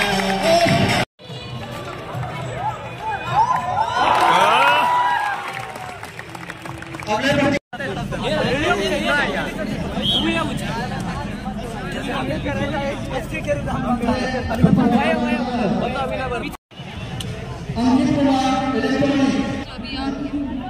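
A crowd of young men chatters and cheers outdoors.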